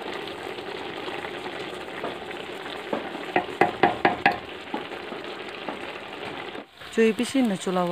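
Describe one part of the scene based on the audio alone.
A wooden spoon scrapes and stirs inside a metal pot.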